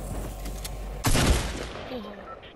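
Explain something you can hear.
Gunshots and blasts crack loudly in a video game.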